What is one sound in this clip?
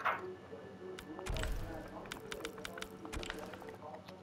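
Short electronic menu clicks tick several times in quick succession.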